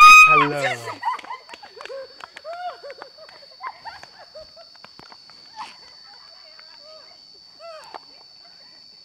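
Young women squeal and laugh as they hurry away, fading into the distance.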